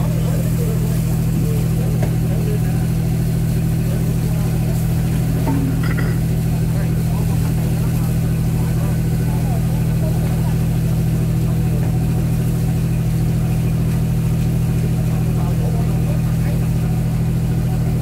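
A boat engine hums steadily and loudly.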